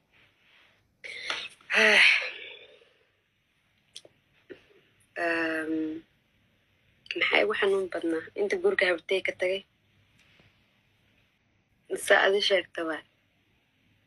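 A young woman talks with animation through a phone microphone.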